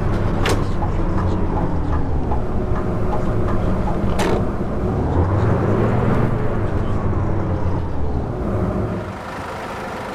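A city bus diesel engine drones while driving.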